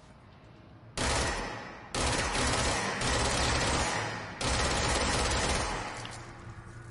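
A gun fires in loud, roaring bursts.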